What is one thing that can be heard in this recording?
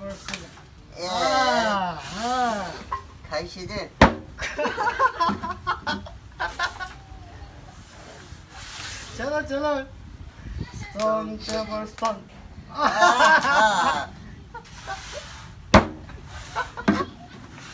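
Two young men laugh loudly together close by.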